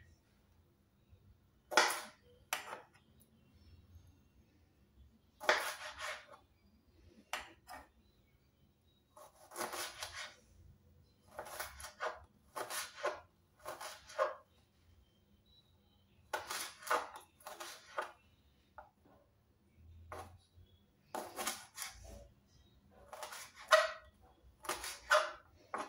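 A knife cuts through cucumbers and taps on a cutting board.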